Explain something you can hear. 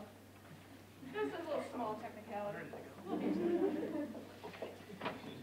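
A woman speaks calmly to an audience.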